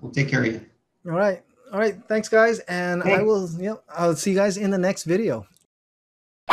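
A man speaks into a close microphone.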